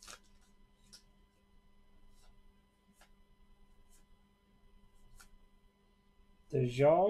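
Trading cards flick and slide softly against one another.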